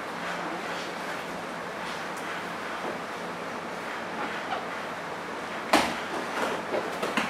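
Two grapplers scuffle and thump on a padded mat.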